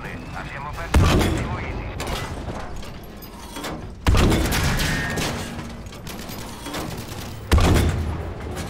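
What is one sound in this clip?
A tank cannon fires with loud, echoing booms.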